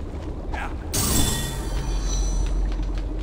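A bright shimmering magical whoosh sweeps through the air.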